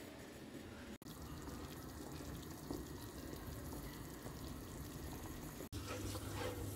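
A pot of soup simmers and bubbles gently.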